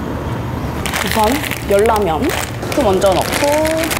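A plastic packet crinkles.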